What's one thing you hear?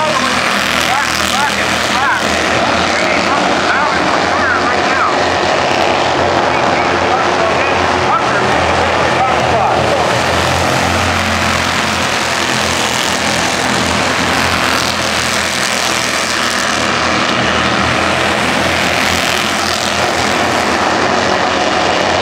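Race car engines roar loudly as the cars speed around a track.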